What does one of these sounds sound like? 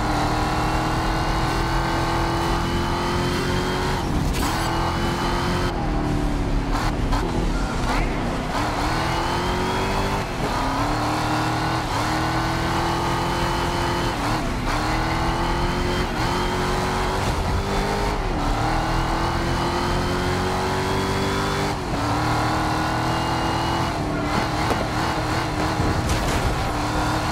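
A racing car engine roars loudly, rising in pitch as it speeds up and dropping sharply at each gear change.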